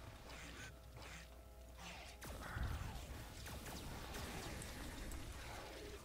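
Laser blasters fire in quick bursts.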